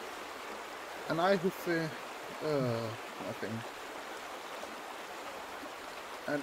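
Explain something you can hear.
A river rushes over rocks.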